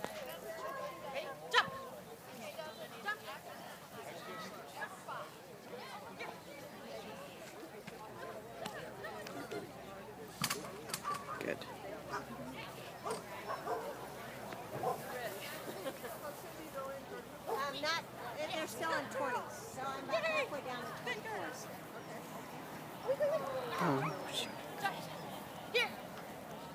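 People chatter and call out nearby outdoors.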